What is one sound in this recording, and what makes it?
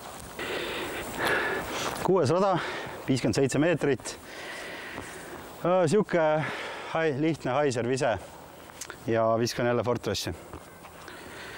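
A man speaks with animation close to a microphone, outdoors.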